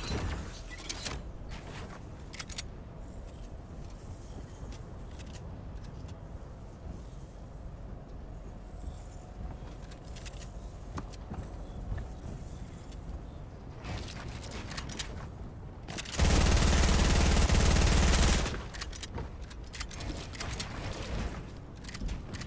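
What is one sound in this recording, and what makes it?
Building pieces snap into place with quick clicks and thuds.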